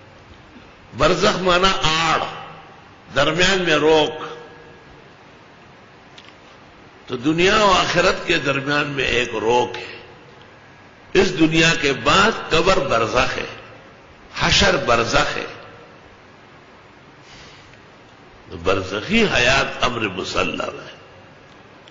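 An elderly man speaks in short bursts with pauses, heard through a microphone.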